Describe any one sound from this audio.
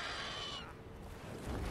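A large beast lets out a shrill screech.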